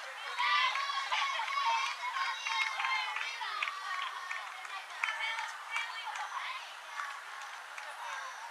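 Players call out and chatter across an open field.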